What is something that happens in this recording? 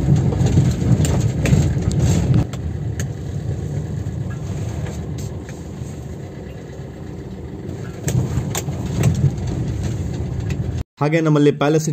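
A car engine rumbles low while driving.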